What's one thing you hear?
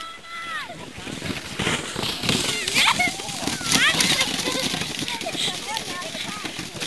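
Young children chatter and shout excitedly close by.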